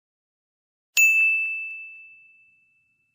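A small bell chimes and rings out.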